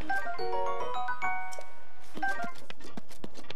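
A short bright chime melody plays.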